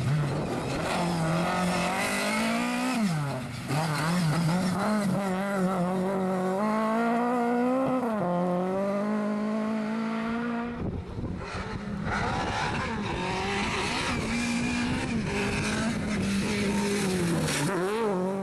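A rally car engine roars and revs hard up and down.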